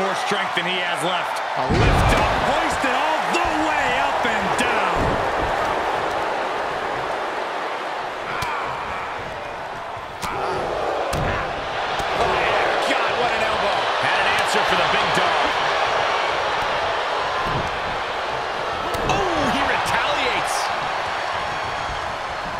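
A large arena crowd cheers and roars steadily.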